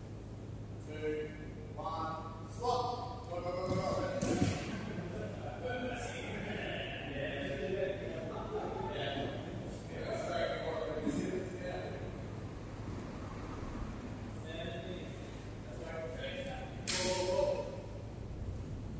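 A woman speaks calmly in a large, echoing hall.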